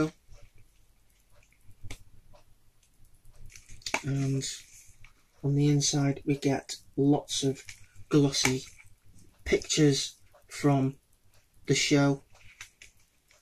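Pages of a book rustle as they are turned.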